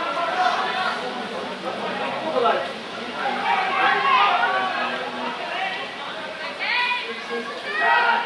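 Men and women shout and call out loudly outdoors.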